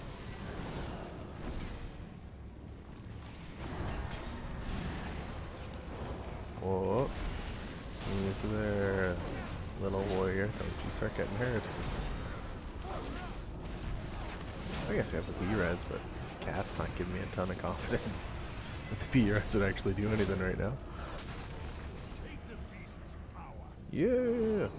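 Fighting sounds and magic effects clash and crackle throughout.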